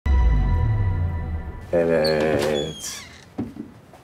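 A wooden box lid creaks open.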